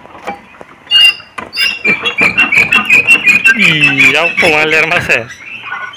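A metal padlock clicks and rattles against a door latch.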